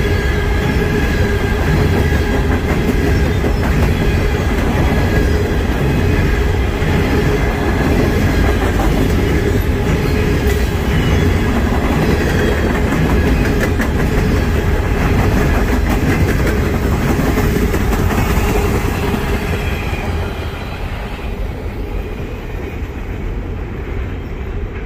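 A long freight train rumbles past close by and fades away into the distance.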